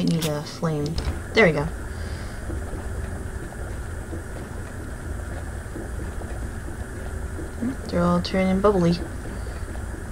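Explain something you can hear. A gas burner flame hisses and roars steadily.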